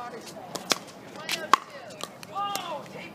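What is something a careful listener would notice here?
Pickleball paddles strike a plastic ball with sharp pops.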